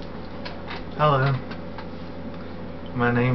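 A young man sings short, held notes close by.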